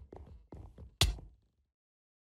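A sudden loud hit strikes.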